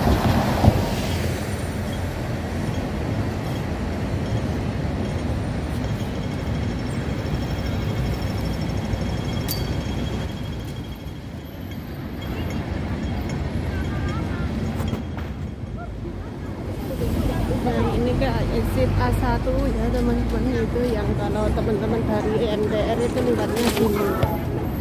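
Traffic rumbles steadily on a busy street outdoors.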